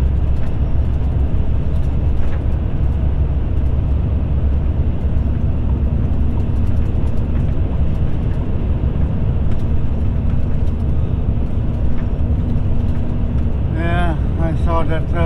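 Tyres rumble steadily on a road.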